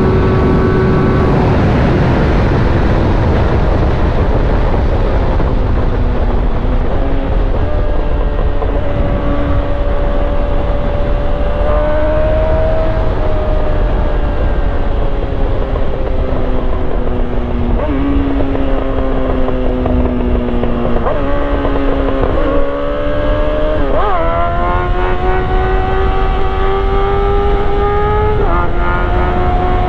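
A motorcycle engine hums steadily and rises and falls in pitch with gear shifts.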